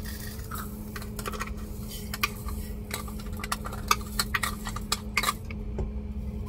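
A cup knocks and clinks against a metal pan.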